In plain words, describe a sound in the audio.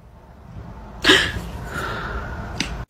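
A cat yowls loudly.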